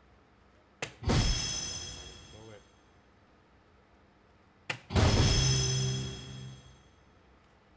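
An electronic dartboard plays a loud, bright chiming sound effect that slowly fades.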